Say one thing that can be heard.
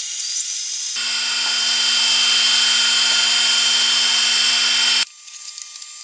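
A milling machine's end mill cuts into a steel pipe with a steady whine.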